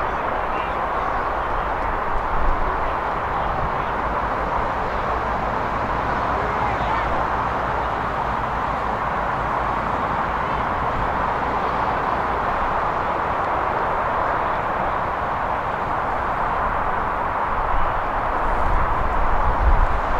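Young players shout and call to each other at a distance.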